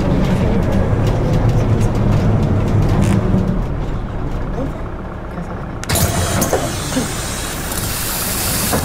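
A bus engine rumbles low and steady.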